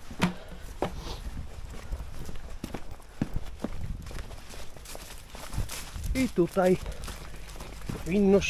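Footsteps crunch over paving and dry leaves outdoors.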